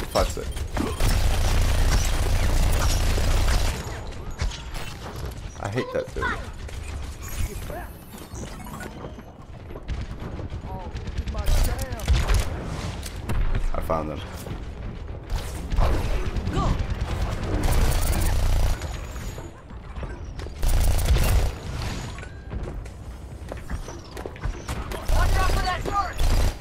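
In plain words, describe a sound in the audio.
Gunfire from a video game rattles in bursts.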